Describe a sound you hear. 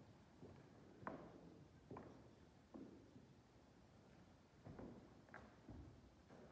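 Soft footsteps thud on a carpeted floor as a man walks away.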